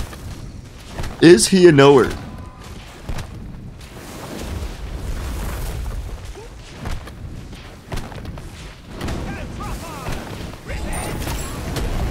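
Magical blasts and weapon strikes clash in a fight.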